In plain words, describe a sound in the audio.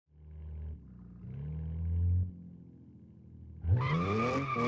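A car engine idles and revs in short bursts.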